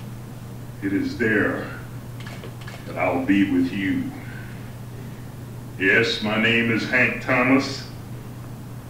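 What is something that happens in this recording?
An elderly man speaks slowly and deliberately into a close microphone, with pauses between phrases.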